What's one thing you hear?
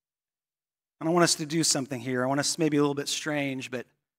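A man speaks clearly and with energy into a microphone.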